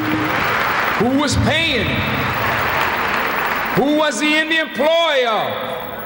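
A man speaks forcefully through a microphone in a large echoing hall.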